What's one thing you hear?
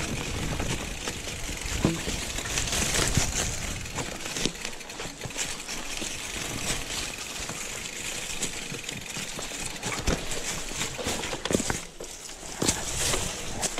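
A bicycle rattles and clunks over bumps.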